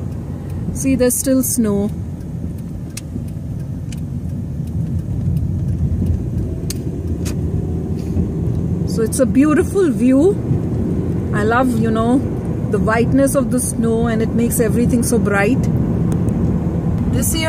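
A car's engine and tyres rumble steadily on the road.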